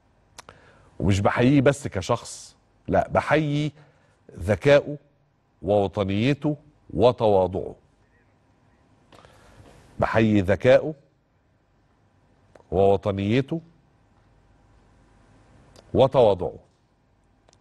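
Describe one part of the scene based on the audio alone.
A middle-aged man speaks with emphasis into a microphone, in short bursts with pauses.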